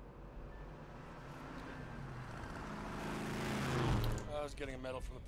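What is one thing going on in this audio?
A car engine approaches and grows louder.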